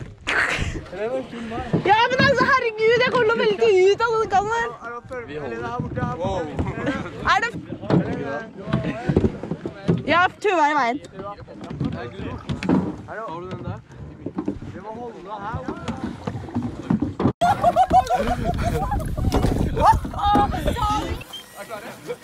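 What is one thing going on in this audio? Young people talk and laugh with animation close by.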